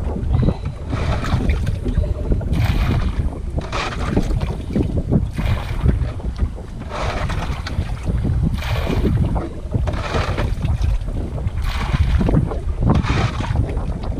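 A fishing line swishes as it is pulled in by hand in quick bursts.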